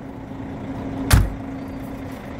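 A bus luggage compartment door slams shut with a heavy thud.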